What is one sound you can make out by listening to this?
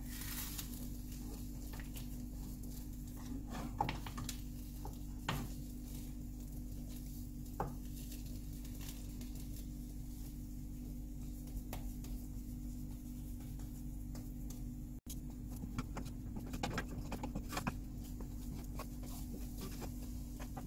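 A wooden spatula scrapes and taps against a pan.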